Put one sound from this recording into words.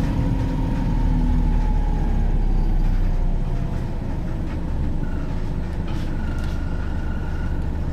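A bus interior rattles and hums over the road.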